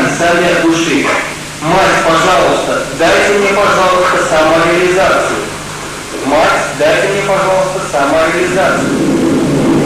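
A woman speaks calmly into a microphone, heard over a loudspeaker.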